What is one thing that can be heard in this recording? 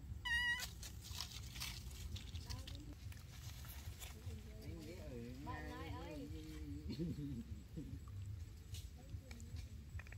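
Small monkeys scuffle and rustle in dry leaves.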